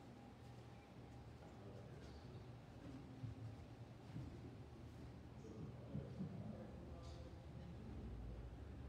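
Men and a woman talk quietly in a large echoing room.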